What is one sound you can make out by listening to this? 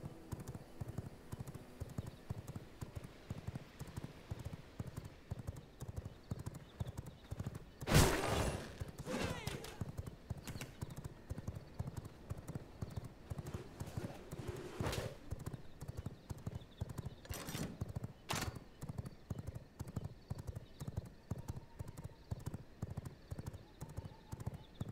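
Footsteps tread steadily along a path.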